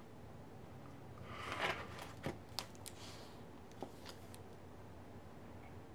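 A hardcover book is lifted and shifted, with faint taps and rustles.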